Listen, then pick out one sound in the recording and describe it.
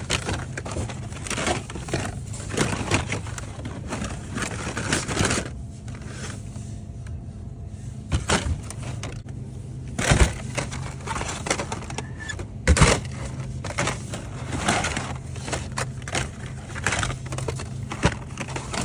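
Stiff plastic packaging crinkles and clatters as a hand rummages through a pile of it.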